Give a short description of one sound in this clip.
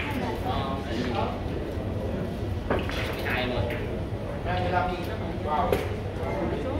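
Billiard balls clack together on a table.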